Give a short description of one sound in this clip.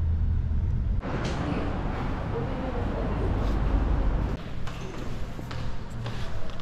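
Footsteps walk along a paved street.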